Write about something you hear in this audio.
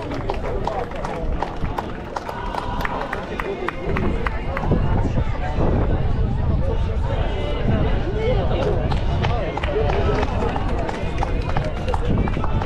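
People clap their hands nearby.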